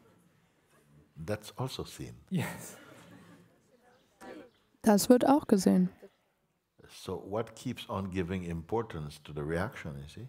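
An elderly man laughs and speaks with animation through a microphone.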